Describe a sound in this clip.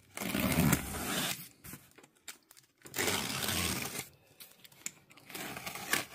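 A box cutter slices through packing tape.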